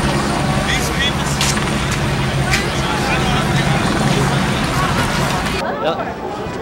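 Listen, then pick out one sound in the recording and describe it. A large crowd cheers and whistles outdoors.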